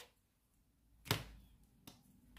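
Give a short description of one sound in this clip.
A pencil taps down onto a table.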